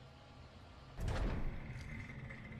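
A heavy mechanical clunk sounds as a crane locks into place.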